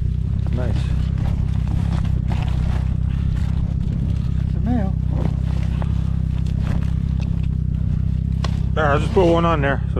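A plastic dry bag rustles as it is handled.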